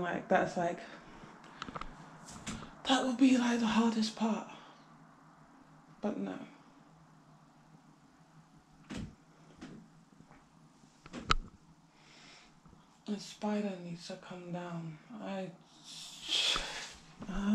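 A young woman talks casually, close by, with pauses.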